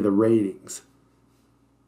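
A man speaks briefly and calmly into a microphone.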